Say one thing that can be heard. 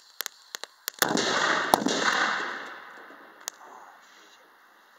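A cannon fires with a loud boom that echoes and slowly fades outdoors.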